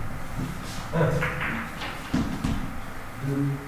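Billiard balls click against each other and the cushions.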